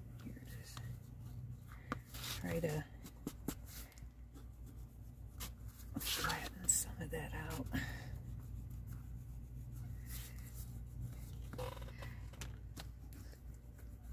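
A tool scrapes along folded paper, pressing a crease.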